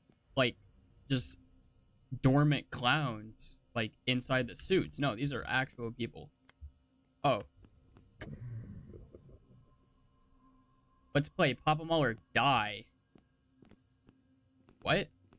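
A young man talks animatedly into a close microphone, with short pauses.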